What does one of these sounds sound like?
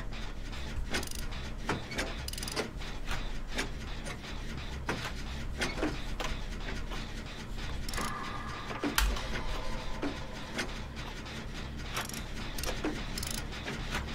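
A machine clanks and rattles with repeated metallic clicks.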